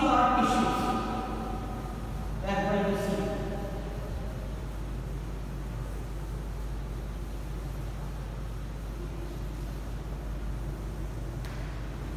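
A board eraser rubs across a chalkboard.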